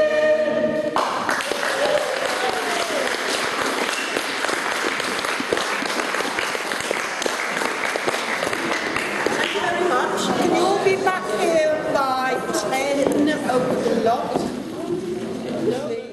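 A crowd of people chatter and laugh in an echoing hall.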